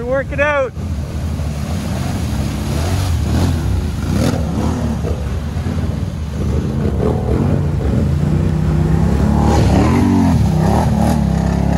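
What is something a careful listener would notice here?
Thick mud splashes and sprays around churning tyres.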